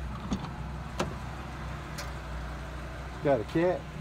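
A vehicle door latch clicks and the door swings open.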